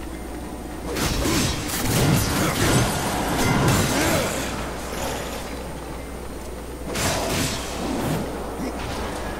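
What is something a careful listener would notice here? Ice shatters and crashes.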